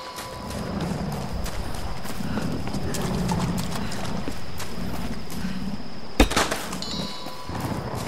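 Footsteps crunch on leaves and undergrowth.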